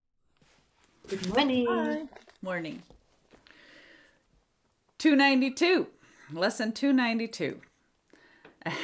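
A middle-aged woman talks warmly over an online call.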